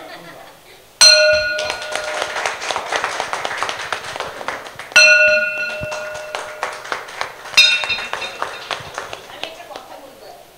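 A small group claps.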